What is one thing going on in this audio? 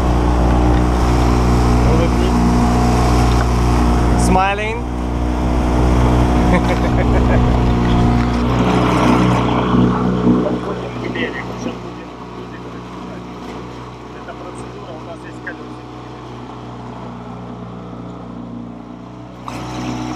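An outboard motor drones steadily.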